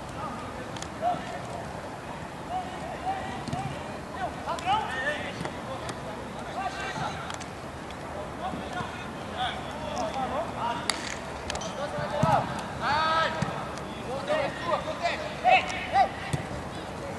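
Young men shout and call to each other across an open outdoor pitch.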